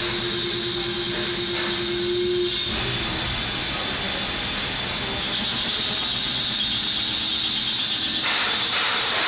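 A lathe runs with a loud, steady whir as its cutter scrapes through metal.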